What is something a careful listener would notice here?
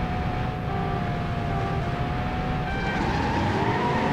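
Countdown beeps sound.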